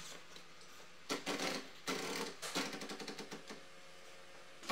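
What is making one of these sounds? A sheet of paper rustles and crackles.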